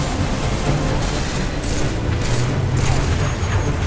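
Plasma bolts whizz and crackle past.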